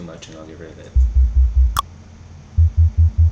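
Deep electronic bass notes thump loudly in short bursts.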